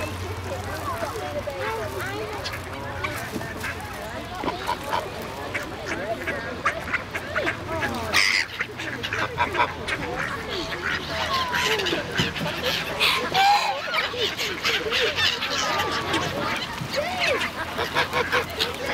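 Geese honk and cackle close by.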